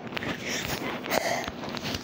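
Fingers rub against a fuzzy microphone cover.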